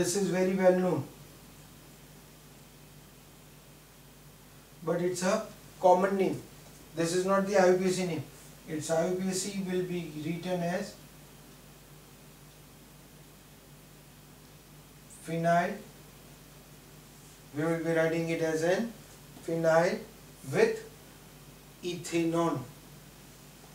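A middle-aged man speaks calmly and clearly, close by, in short bursts with pauses.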